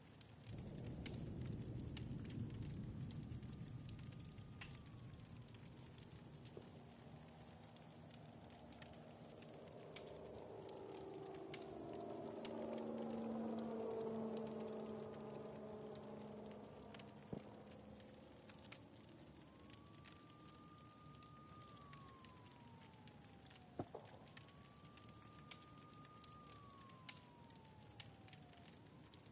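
A bonfire crackles and pops.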